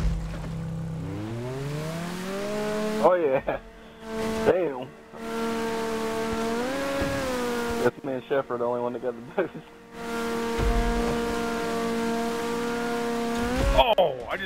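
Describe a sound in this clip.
A speedboat engine roars and revs up as the boat races across the water.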